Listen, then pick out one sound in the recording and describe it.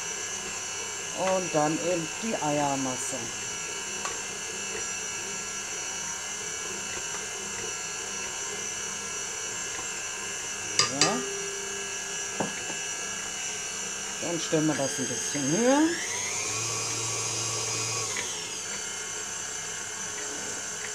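A stand mixer whirs steadily as it beats dough.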